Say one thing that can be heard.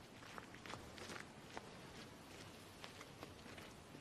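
Footsteps crunch lightly on a gravel path.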